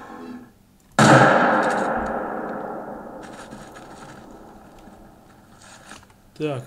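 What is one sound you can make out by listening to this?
A rifle fires a single loud shot that echoes and slowly rolls away.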